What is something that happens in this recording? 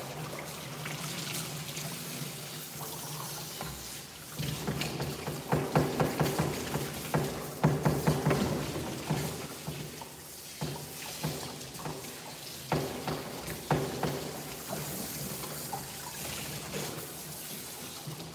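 Water splashes as a dog is washed.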